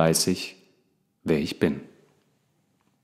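A man reads aloud calmly and closely into a microphone.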